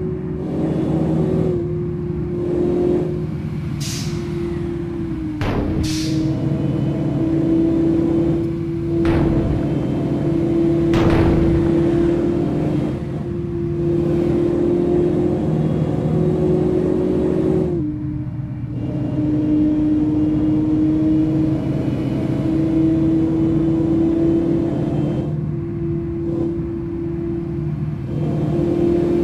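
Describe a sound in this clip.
Tyres roar on a paved road.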